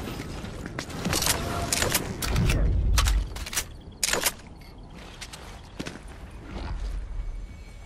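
Footsteps clatter quickly across roof tiles.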